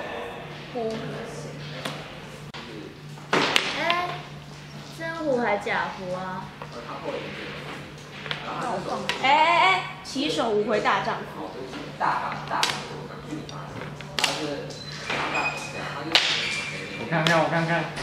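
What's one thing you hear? Mahjong tiles clack against each other on a table.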